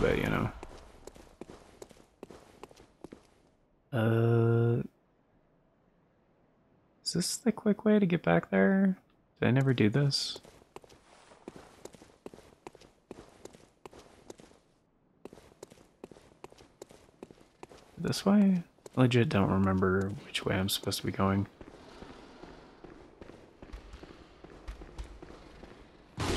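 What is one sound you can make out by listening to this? Footsteps crunch on stone, one after another.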